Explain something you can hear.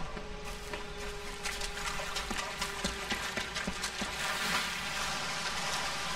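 Water splashes and rushes as someone wades through a stream.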